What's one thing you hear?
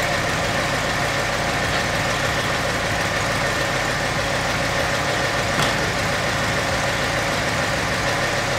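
A car engine idles steadily with a low rumble.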